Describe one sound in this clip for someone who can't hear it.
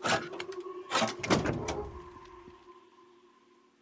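A car's tailgate swings open with a thud.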